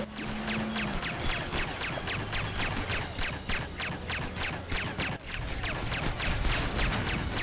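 Guns fire in rapid, repeated bursts.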